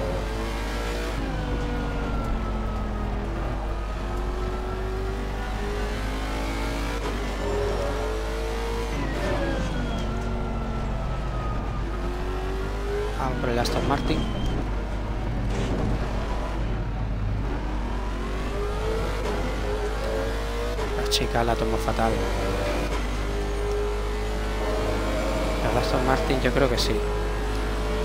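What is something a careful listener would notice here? A racing car engine revs up and down as it shifts through the gears.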